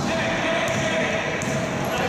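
A basketball bounces on a wooden floor as a player dribbles.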